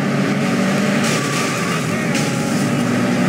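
Cars scrape and clash against each other with a metallic crunch.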